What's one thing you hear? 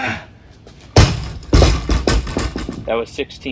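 Weight plates clank and rattle.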